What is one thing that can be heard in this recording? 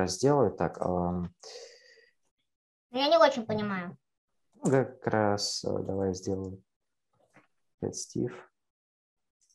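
A teenage boy speaks calmly through an online call.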